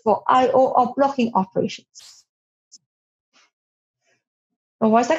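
A young woman speaks calmly through a computer microphone.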